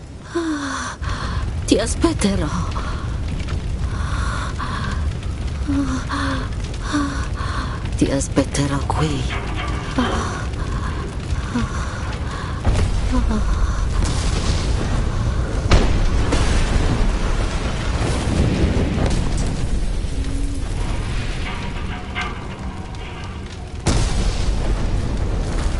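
A fire roars and crackles.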